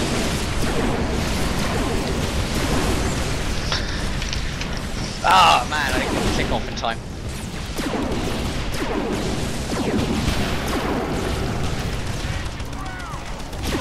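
A weapon fires rapid shots.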